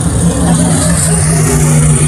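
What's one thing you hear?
A car engine revs up and down as it passes close by.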